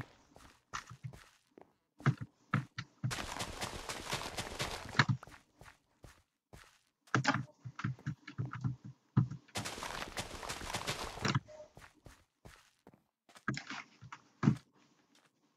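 Crops rustle and snap as they are broken.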